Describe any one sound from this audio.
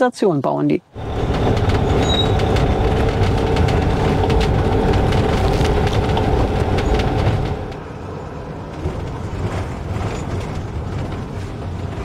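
Tyres rumble over an uneven road surface.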